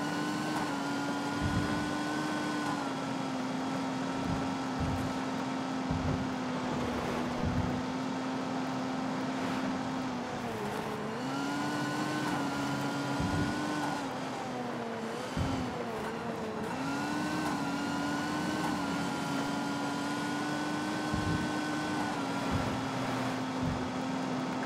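Tyres rumble and splash over a wet dirt road.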